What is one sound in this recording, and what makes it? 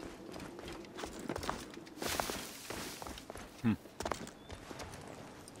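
Footsteps scuff and scrape on stone.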